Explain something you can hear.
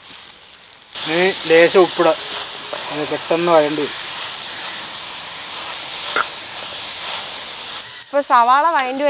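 Onions sizzle loudly in a hot pan.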